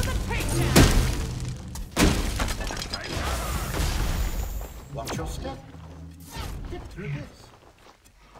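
Magic blasts crackle and boom in a video game.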